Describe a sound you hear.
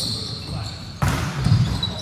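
A volleyball is struck hard with a sharp slap in a large echoing hall.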